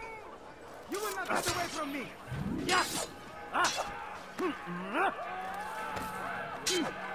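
Swords clash and ring out sharply.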